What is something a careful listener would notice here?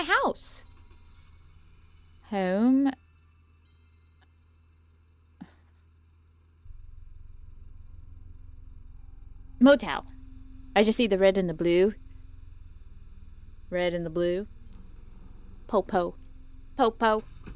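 A young woman speaks close to a microphone in short, animated bursts.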